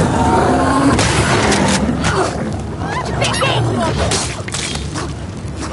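Heavy blows thud in a close fight.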